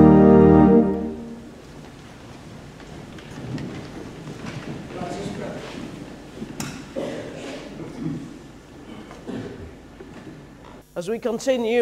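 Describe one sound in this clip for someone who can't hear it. Chairs creak and feet shuffle as a congregation sits down.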